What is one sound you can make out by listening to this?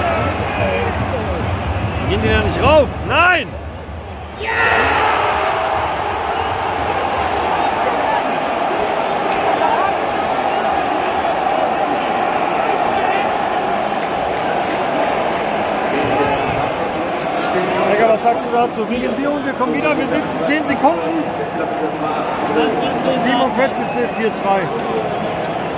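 A large stadium crowd roars and chants loudly all around.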